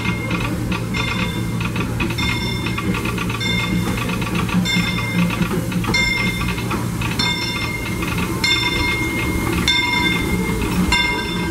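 A steam locomotive rumbles and chugs as it slowly pulls in close by.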